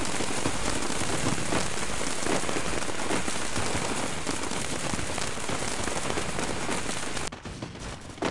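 Fiery sparks crackle and roar in a loud burst of game effects.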